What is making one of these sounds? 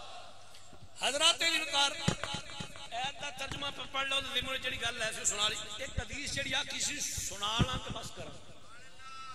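A man chants loudly and with passion into a microphone, heard through loudspeakers.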